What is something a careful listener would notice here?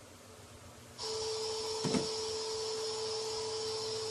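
A television switches on and gives off a steady electronic hum with hiss.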